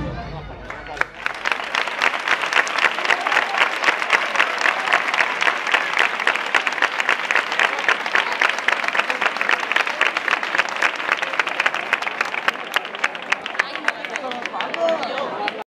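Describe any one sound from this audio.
A crowd applauds loudly in a large echoing space.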